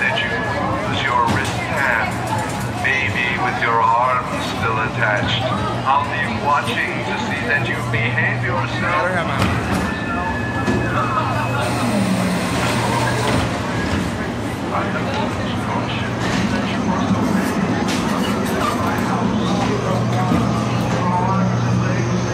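A crowd of children and adults chatter and shout nearby, outdoors.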